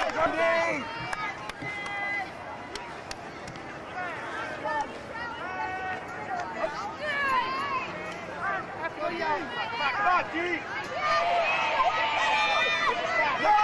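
Young women in a crowd nearby chatter and cheer outdoors.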